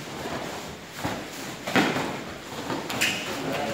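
Martial arts uniforms snap sharply as kicks are thrown.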